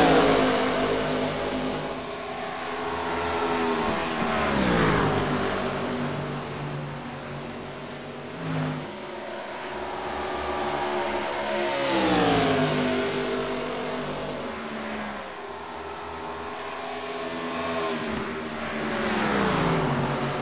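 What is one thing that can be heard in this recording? Race car engines roar past, rising and falling in pitch as they speed by.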